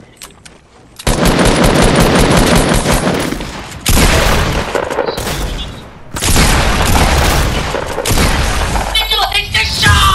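A gun fires in rapid, loud bursts.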